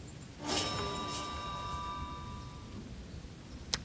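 A bright chime rings out and fades.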